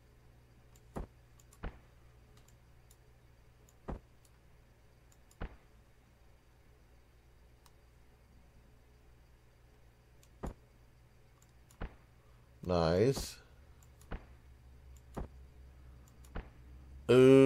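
Short, soft interface clicks sound now and then as menu items are selected.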